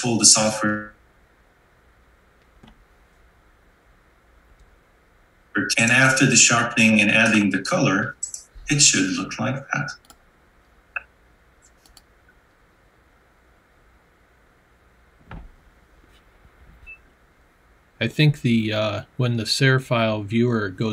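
A young man talks calmly through an online call.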